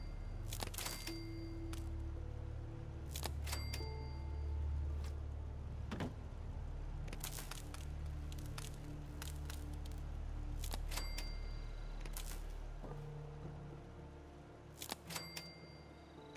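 Short interface clicks and chimes sound again and again as menu items are selected.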